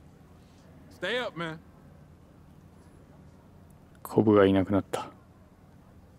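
A second young man answers calmly.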